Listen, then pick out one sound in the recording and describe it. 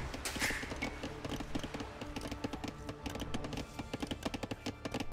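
Hammers knock rapidly on wood.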